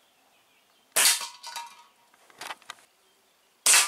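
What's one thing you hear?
A metal can is hit and clatters as it falls.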